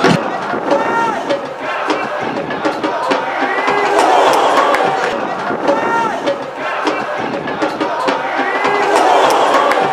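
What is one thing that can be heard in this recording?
A football thuds as players kick it.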